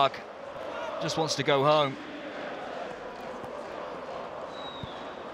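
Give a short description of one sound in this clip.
A large crowd murmurs and chants steadily in an open stadium.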